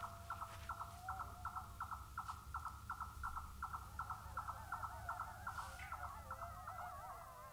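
A frog calls with a rapid, pulsing trill.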